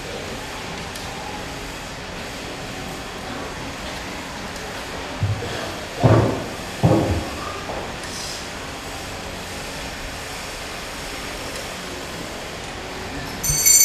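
A crowd murmurs softly in a large, echoing hall.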